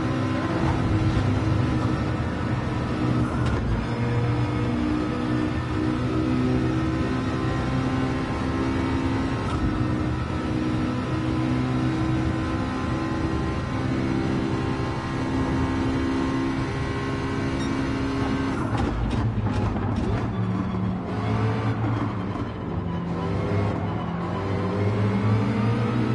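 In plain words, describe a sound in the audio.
A racing car engine roars at high revs, shifting gears up and down.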